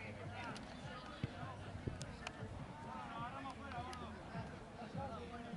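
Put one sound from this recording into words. A crowd of spectators talks and calls out outdoors.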